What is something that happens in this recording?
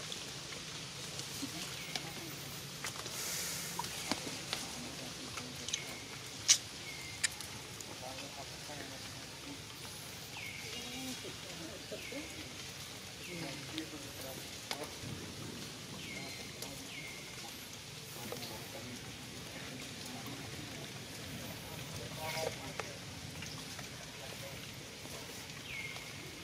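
Water drips into a shallow puddle.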